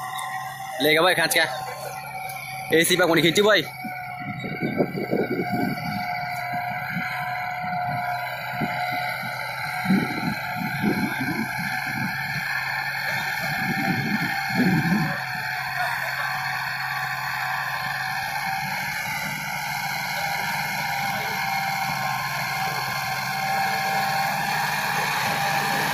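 A disc harrow scrapes and churns through dry soil.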